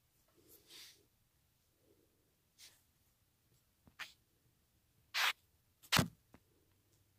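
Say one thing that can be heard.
A hand bumps and rubs against a microphone close up.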